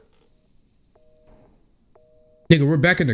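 A telephone line beeps in short, steady tones through the earpiece.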